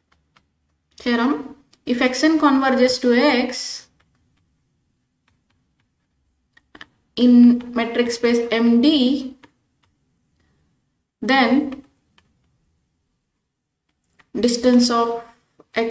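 A woman speaks calmly and slowly, close to a microphone, with pauses between phrases.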